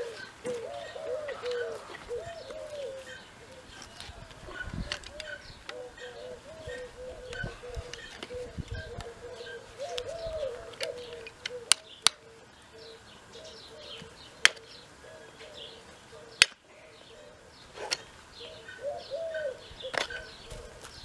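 A hoof knife scrapes and clicks against a horse's hoof.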